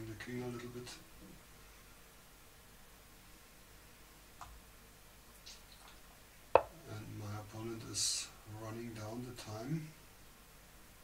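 A middle-aged man talks calmly into a microphone.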